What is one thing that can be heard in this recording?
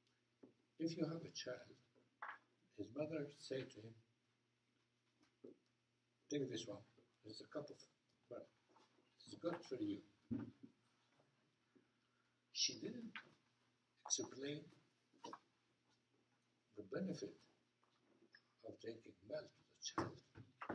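An elderly man speaks calmly in short bursts with pauses.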